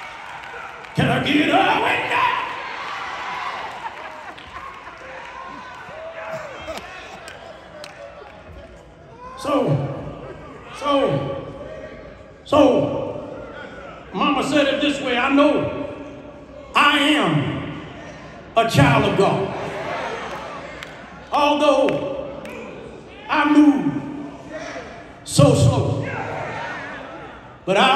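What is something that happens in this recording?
A man preaches with rising passion through a microphone and loudspeakers in a large echoing hall.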